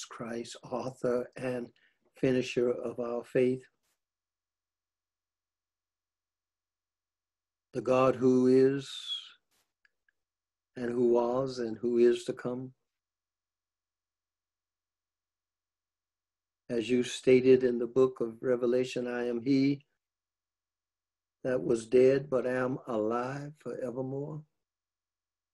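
An elderly man speaks calmly in short bursts, with long pauses between them.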